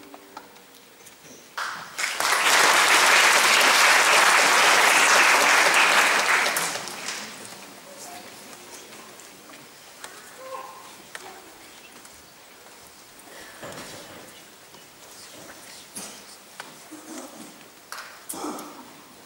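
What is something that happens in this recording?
A grand piano is played.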